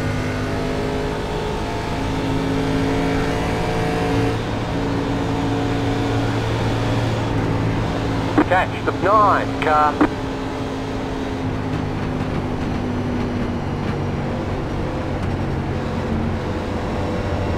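A race car engine drones steadily at low speed.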